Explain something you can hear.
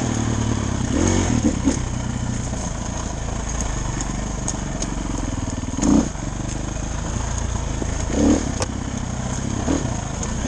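Tyres crunch and bump over rough dirt.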